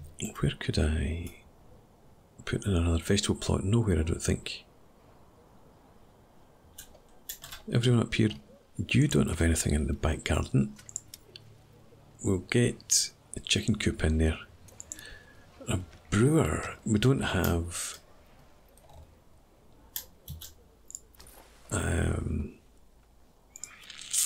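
A man talks calmly and casually into a nearby microphone, in short bursts with pauses.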